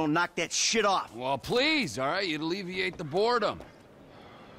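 A man answers with animation, sounding mocking.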